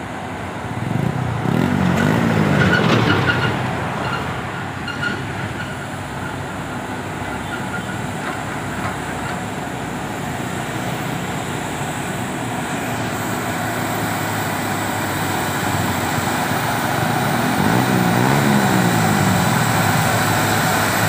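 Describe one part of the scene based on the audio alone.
Other trucks drive past close by.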